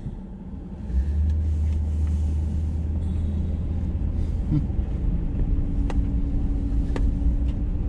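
A vehicle engine revs up as the vehicle drives off over a dirt road.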